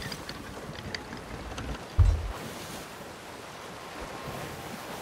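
Sea waves wash steadily against a wooden ship's hull.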